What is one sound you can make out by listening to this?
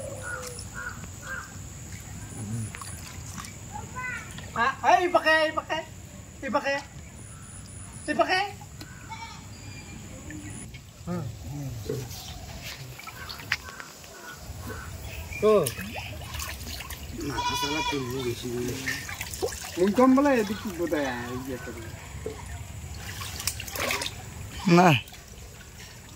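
Water sloshes as a net is dragged through it.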